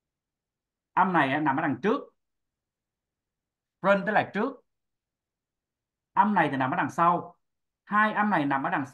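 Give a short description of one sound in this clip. A woman speaks calmly, heard through an online call, in short phrases with pauses.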